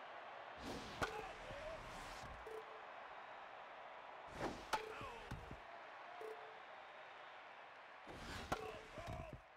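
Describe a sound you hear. A baseball smacks sharply into a catcher's mitt.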